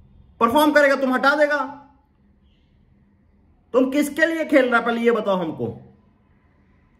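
A young man speaks close to a microphone with animated emphasis.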